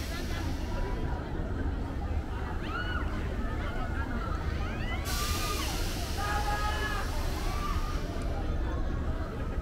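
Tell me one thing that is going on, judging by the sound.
A swinging pirate ship ride rumbles and whooshes steadily.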